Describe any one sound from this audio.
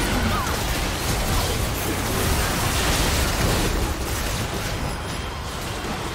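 Video game combat effects crackle and boom in a crowded battle.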